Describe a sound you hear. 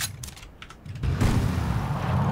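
A car thumps into a tree.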